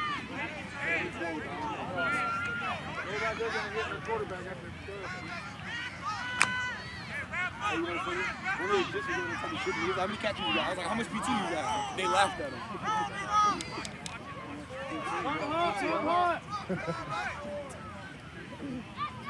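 Young players chatter and call out outdoors.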